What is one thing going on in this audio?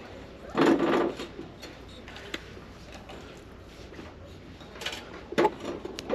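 A ceramic ornament knocks lightly against a glass shelf.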